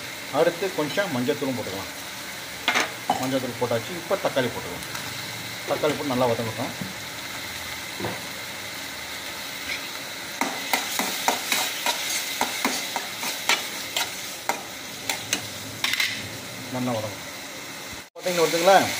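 Onions sizzle steadily in hot oil.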